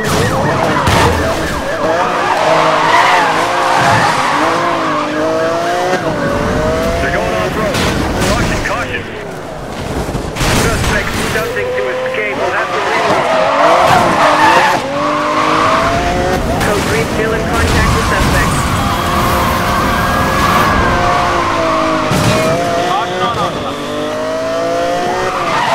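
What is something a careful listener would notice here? A sports car engine roars, revving up and down as it shifts gears.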